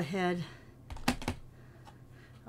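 A plastic stamp block taps against an ink pad.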